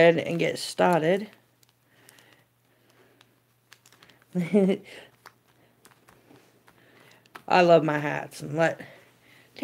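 Foil card packs crinkle and rustle as hands shuffle them.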